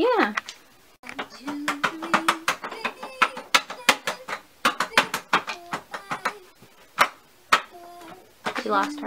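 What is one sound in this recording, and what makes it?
Plastic toys clatter and knock as they are rummaged through.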